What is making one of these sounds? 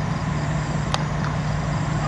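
A cricket bat sharply strikes a ball.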